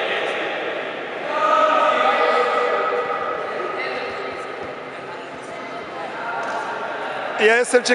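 Young boys talk and call out in a large echoing hall.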